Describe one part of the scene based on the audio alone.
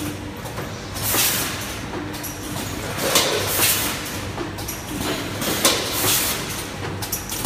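A packing machine lets out sharp hissing bursts of air at a regular pace.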